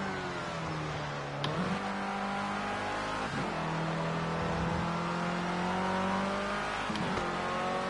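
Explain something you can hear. A racing car engine roars at high revs, its pitch rising and dropping sharply with each gear shift.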